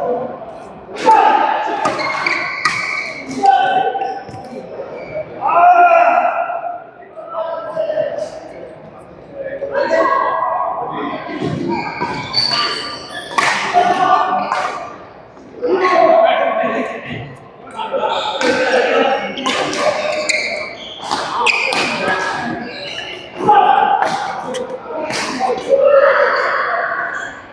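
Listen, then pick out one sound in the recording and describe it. Badminton rackets strike a shuttlecock.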